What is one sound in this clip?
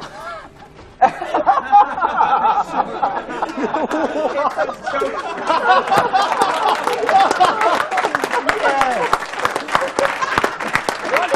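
A group of young men laugh and cheer loudly close by.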